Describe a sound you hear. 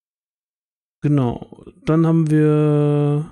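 A woman speaks over an online call, drawing out her voice in a long held sound.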